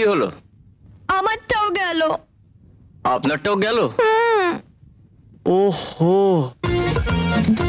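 A young man speaks, close by.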